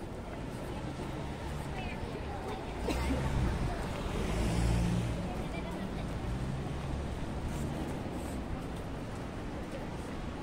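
Traffic rumbles steadily along a city street.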